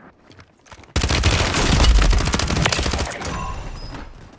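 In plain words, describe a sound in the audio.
Rapid gunfire rings out loudly.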